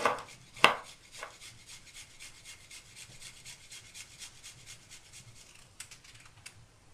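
A spice shaker rattles in quick, steady shakes.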